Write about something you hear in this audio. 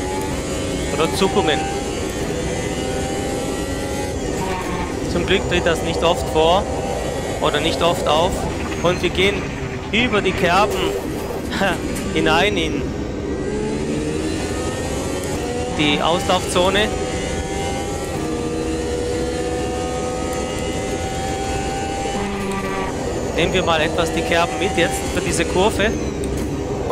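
A racing car engine snarls in short bursts as gears shift down.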